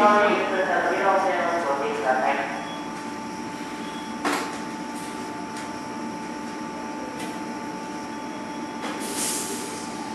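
A stopped electric train hums steadily.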